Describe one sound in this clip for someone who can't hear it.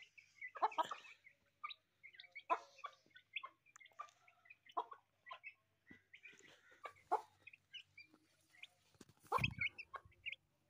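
Chicks cheep in high, short chirps close by.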